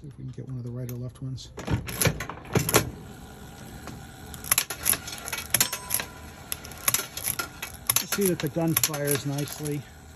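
A small metal ball rattles and rolls across a metal tray.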